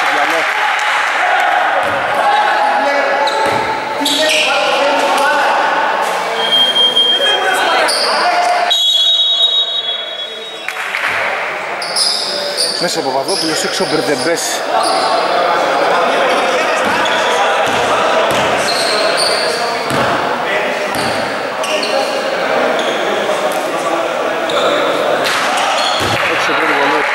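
Basketball players' shoes squeak sharply on a wooden court in a large echoing hall.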